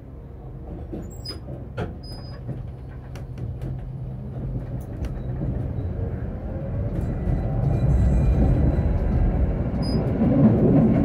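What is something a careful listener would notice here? Tram wheels click and clatter over rail joints.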